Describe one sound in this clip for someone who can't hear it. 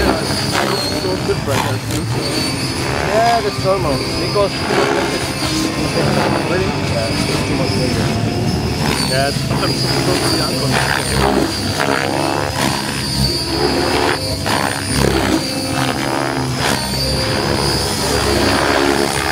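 A model helicopter's motor whines steadily as it flies overhead.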